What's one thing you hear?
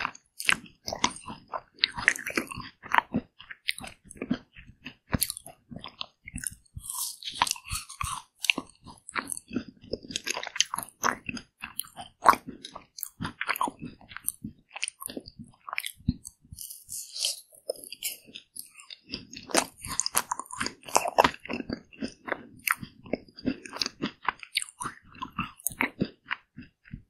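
A woman chews and crunches a crispy coating on ice cream close to a microphone.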